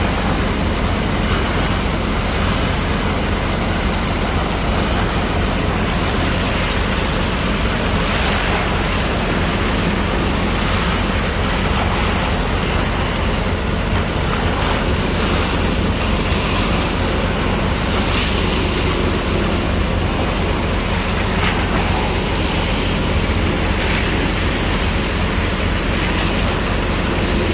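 Muddy water gushes and churns.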